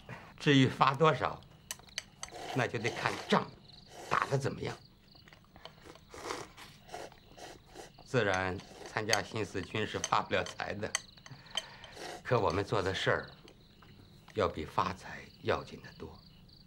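A middle-aged man speaks calmly.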